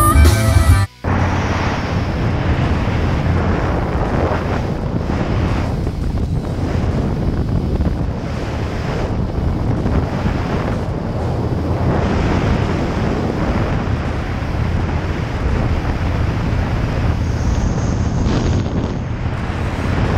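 A motorcycle engine rumbles steadily while riding.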